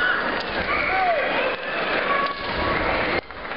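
Fencers shout sharply.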